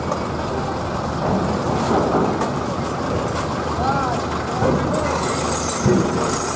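A truck engine rumbles nearby as the truck rolls slowly forward.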